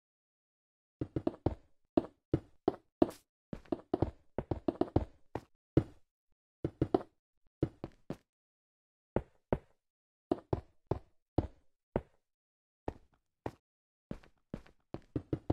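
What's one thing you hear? Stone blocks are placed one after another with short dull thuds.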